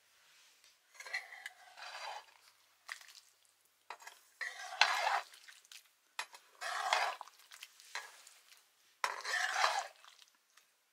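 A ladle scrapes and stirs food in a metal pan.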